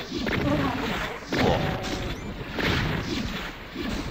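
Fireballs whoosh and explode.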